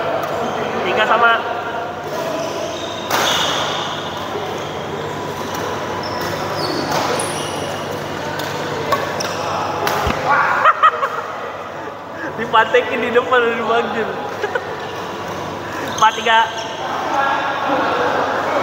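Men call out and talk in a large echoing hall.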